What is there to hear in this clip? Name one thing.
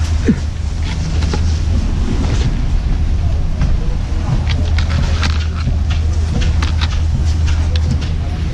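Wind rumbles steadily across a microphone outdoors.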